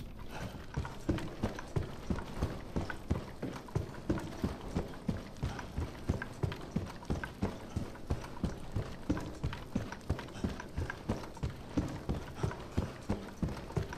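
Footsteps thud quickly and steadily on a hard floor.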